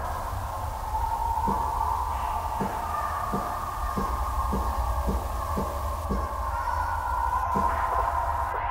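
A dial clicks repeatedly as it turns.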